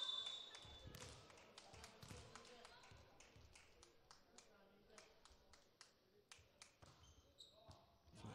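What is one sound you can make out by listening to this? A volleyball bounces on a hard floor in a large echoing hall.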